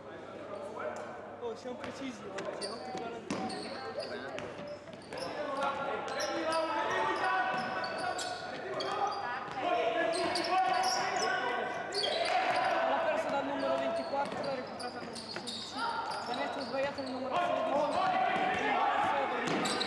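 Basketball shoes squeak on a hardwood court in a large echoing hall.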